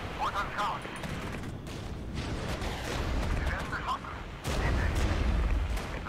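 Explosions rumble and boom in the distance.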